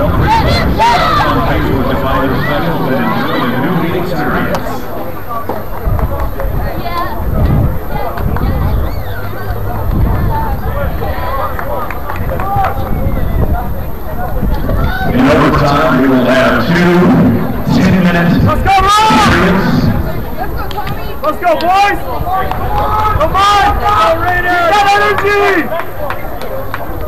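Young men shout to each other across an open field outdoors.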